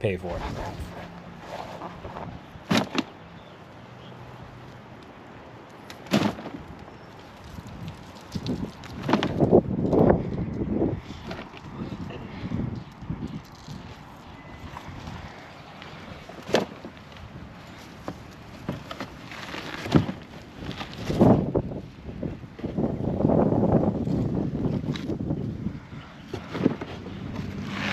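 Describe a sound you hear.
Roots and turf tear out of the soil.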